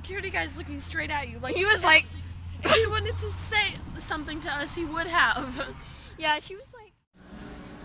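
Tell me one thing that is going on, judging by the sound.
A teenage girl talks with animation close to the microphone.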